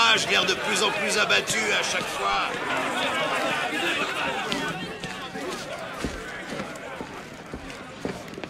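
Heavy footsteps thud slowly on a hard floor.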